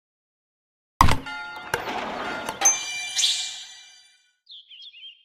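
A game tile clacks into place with a chiming flourish.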